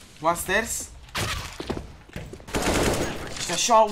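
A rifle reloads with metallic clicks.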